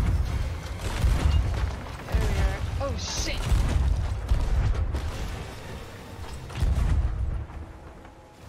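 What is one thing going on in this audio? Cannons boom in heavy, rumbling blasts.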